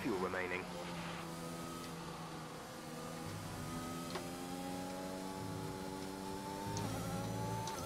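A racing car engine climbs in pitch as the car accelerates again.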